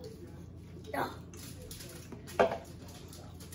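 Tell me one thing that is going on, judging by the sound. Food is set down on a table with soft knocks.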